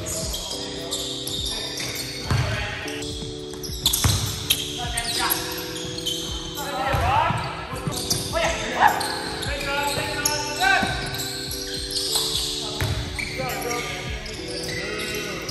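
A basketball bounces with hollow thuds in a large echoing gym.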